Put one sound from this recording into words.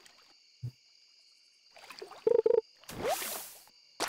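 A fishing line is reeled in with a short whirring.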